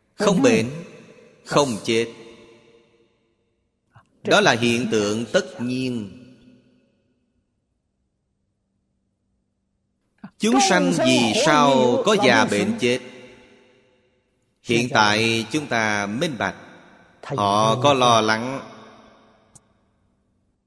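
An elderly man speaks calmly into a close microphone, in short phrases with pauses.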